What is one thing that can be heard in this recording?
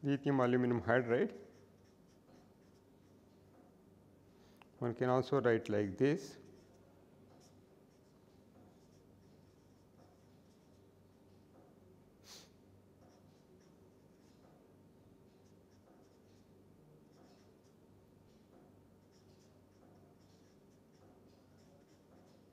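A felt marker scratches and squeaks softly on paper.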